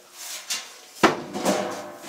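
A metal casing thuds down onto a hard surface.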